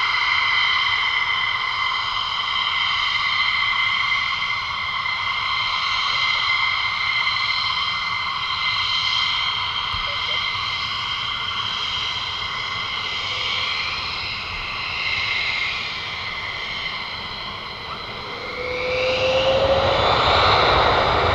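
A jet engine whines steadily as an aircraft taxis.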